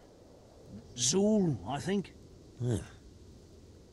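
A man speaks in a puzzled, hesitant voice nearby.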